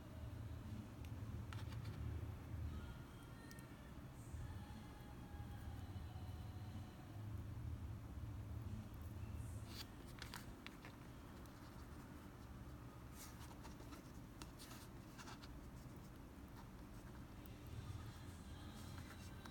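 Fingers click and rustle softly as a hook is worked through a small fish.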